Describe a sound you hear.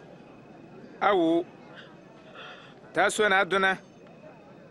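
Another man speaks softly nearby.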